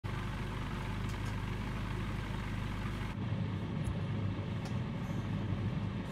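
A small propeller plane's engine idles with a steady low drone.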